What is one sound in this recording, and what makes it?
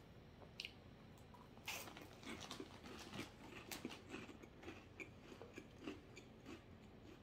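A man chews crunchy chips.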